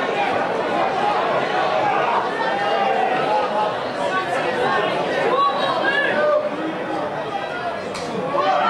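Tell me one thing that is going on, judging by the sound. Men shout to each other outdoors across an open field.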